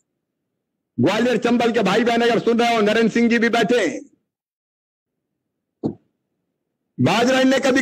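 A man speaks with animation into a microphone over a loudspeaker system.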